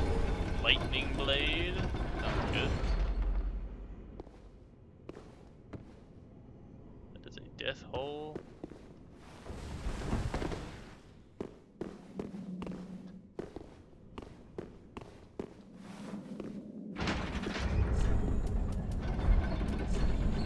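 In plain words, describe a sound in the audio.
Armoured footsteps clink and tap on stone.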